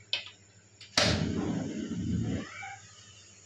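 A gas burner lights with a soft whoosh.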